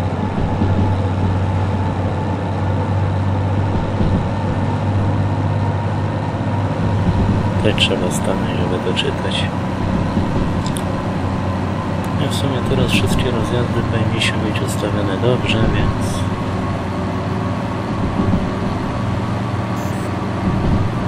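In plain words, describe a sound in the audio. A locomotive engine rumbles steadily.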